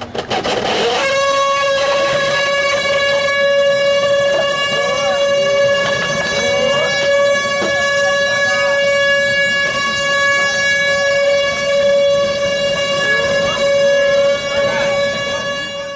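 A wooden ox cart's axle whines with a loud, steady, high drone.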